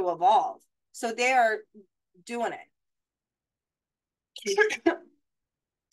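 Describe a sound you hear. A young woman speaks calmly and closely into a microphone, pausing between phrases.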